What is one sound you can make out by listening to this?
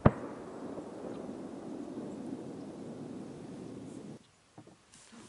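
Wind blows across the open marsh and rustles through tall reeds.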